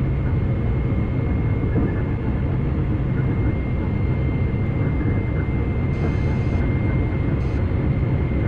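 A train rumbles steadily along the rails at high speed.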